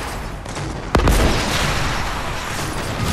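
A rocket explodes in the distance.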